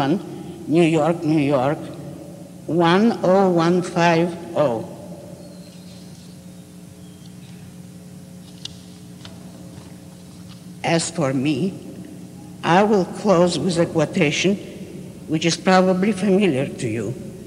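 An elderly woman speaks slowly into a microphone, with long pauses.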